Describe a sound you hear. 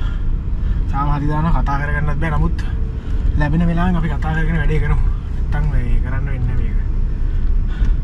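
A young man talks nearby with animation.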